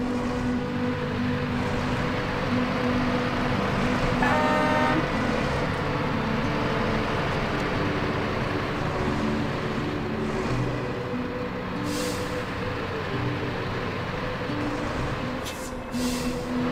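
A heavy truck engine rumbles and strains at low speed.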